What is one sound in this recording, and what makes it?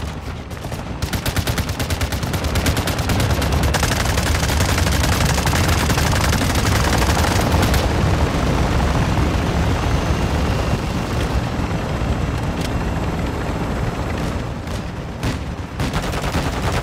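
Helicopter rotors thump loudly overhead.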